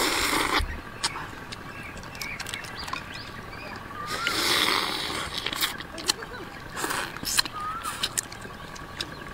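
Crayfish shells crack and crunch in a woman's fingers.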